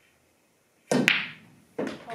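A cue strikes a billiard ball with a sharp crack.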